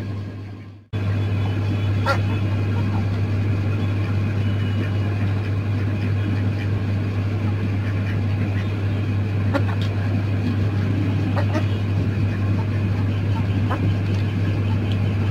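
Hens peck at food in metal bowls with light tapping clicks.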